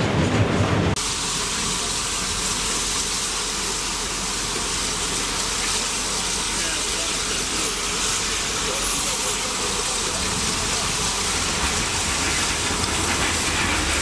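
A passenger train approaches slowly, its engine humming.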